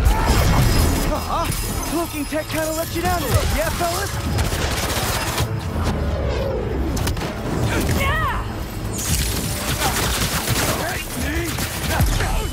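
Energy blasts fire and crackle in quick bursts.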